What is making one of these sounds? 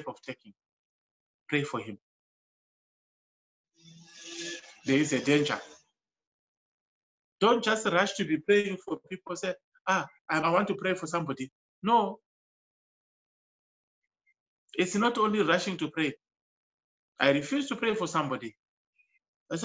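A man speaks calmly in short bursts, heard through an online call.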